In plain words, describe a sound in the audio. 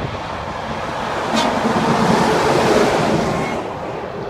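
A large truck roars past close by.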